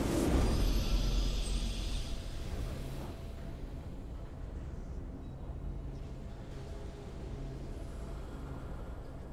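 A triumphant game fanfare plays.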